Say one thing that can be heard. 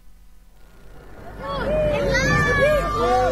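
A crowd of people shout and cheer outdoors.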